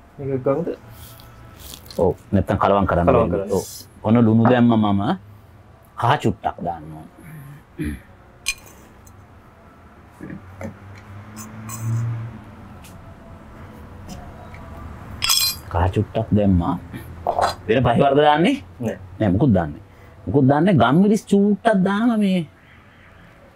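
An older man talks calmly and close by.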